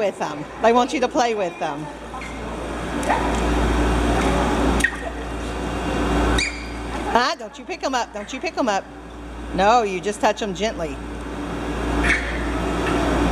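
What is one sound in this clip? Water splashes as a child's hands stir it.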